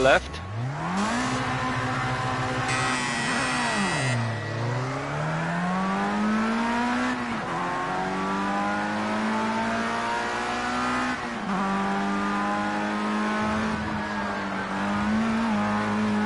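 A racing car engine revs high, rising and dropping sharply in pitch again and again.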